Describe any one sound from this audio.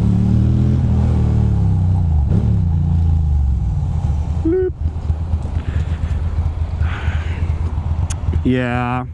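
A motorcycle engine rumbles up close and slows as the rider eases off.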